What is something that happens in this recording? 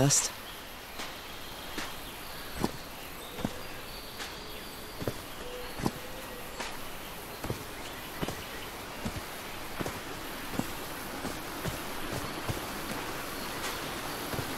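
Footsteps tread steadily along a dirt path.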